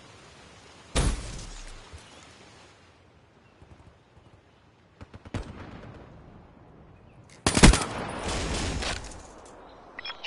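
Gunshots bang loudly with a short echo.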